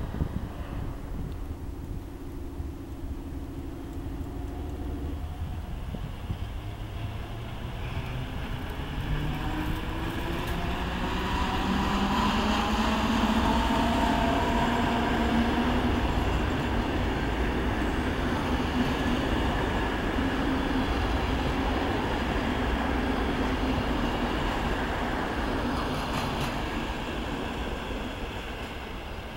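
An electric train rumbles past close by, its motors whining and rising in pitch.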